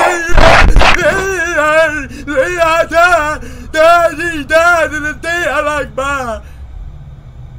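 A young man sings in a wavering, wailing voice.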